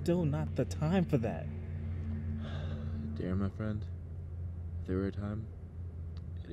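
Young men talk casually, close by.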